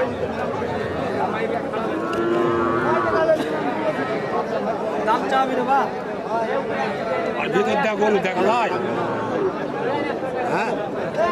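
A crowd of men talk all around, close by, outdoors.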